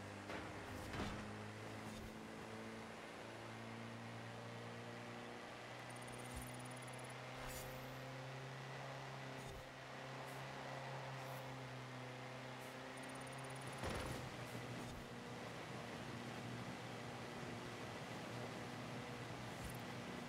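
A jeep engine drones steadily, rising and falling slightly as it shifts gears.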